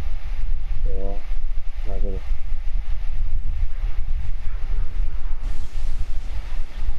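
Flames crackle and roar steadily.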